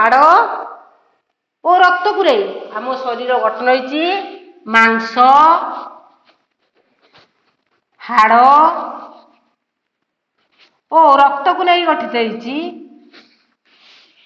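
A woman speaks clearly and slowly nearby, as if teaching.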